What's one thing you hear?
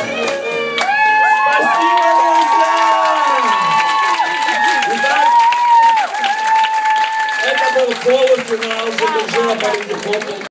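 A live band plays an upbeat swing tune.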